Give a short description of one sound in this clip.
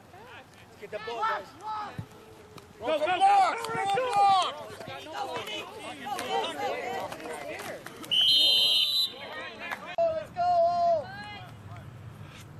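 A crowd of adults cheers and shouts excitedly nearby.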